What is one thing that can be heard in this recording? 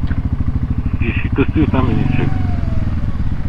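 A second motorcycle engine idles and revs briefly nearby.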